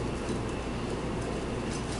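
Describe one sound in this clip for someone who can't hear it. Spice shakes from a shaker onto meat.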